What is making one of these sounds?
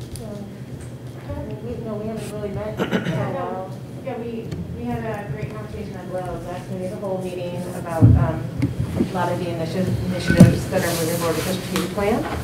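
A woman speaks calmly through a microphone in a large echoing room.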